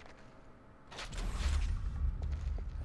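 A heavy metal crate lid clanks open.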